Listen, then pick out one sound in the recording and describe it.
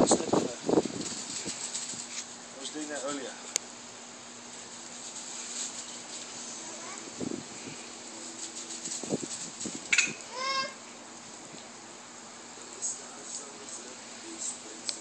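A sprinkler sprays water with a steady hiss.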